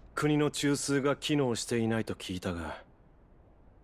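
A man asks a question in a calm, low voice, close by.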